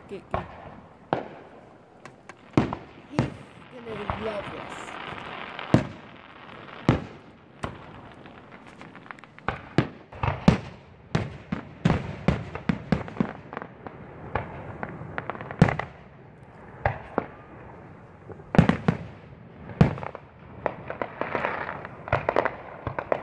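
Fireworks burst with loud booms and bangs, some close and some far off.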